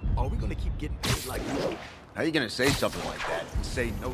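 Wind rushes past during a fast swing through the air.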